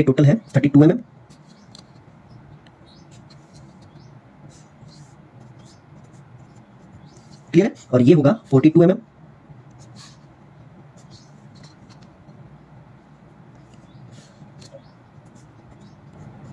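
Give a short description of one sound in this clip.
A pencil scratches along paper in short strokes.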